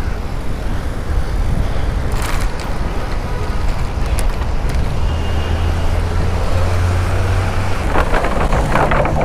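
Bicycle tyres roll over the pavement.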